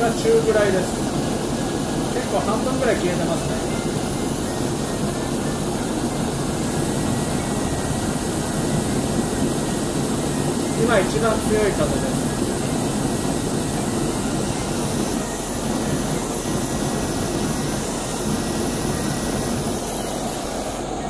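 A gas burner hisses and roars steadily.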